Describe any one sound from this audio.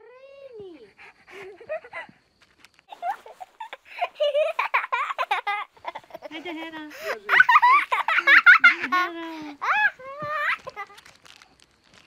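Young children squeal and laugh excitedly close by.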